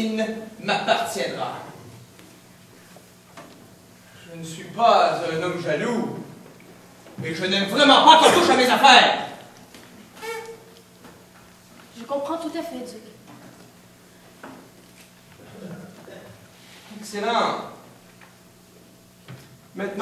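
A man speaks theatrically with a slight echo.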